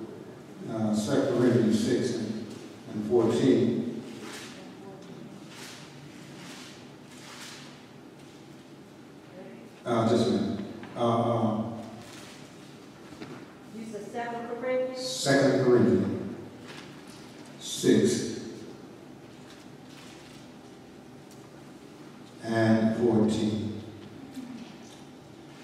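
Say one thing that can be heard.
A man preaches loudly through a microphone in a large echoing hall, in bursts with pauses.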